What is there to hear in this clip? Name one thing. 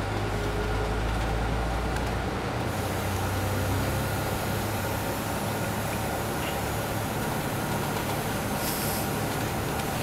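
A bus engine rumbles steadily as the bus rolls along.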